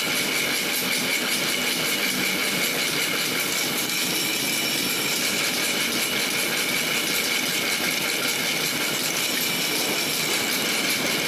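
A drill press grinds steadily through thick metal with a high whine.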